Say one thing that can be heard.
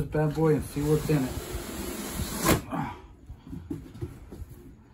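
Cardboard scrapes and slides as a box lid is lifted off.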